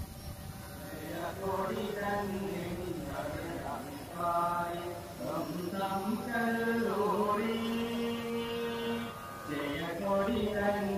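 A group of young people sing a slow anthem outdoors.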